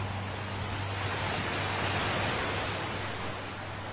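Waves crash and break over rocks close by.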